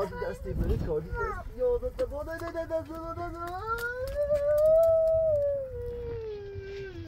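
A wood fire crackles.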